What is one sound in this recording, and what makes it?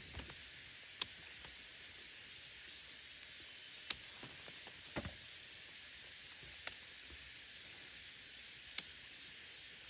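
Scissors snip through pepper stems with sharp clicks.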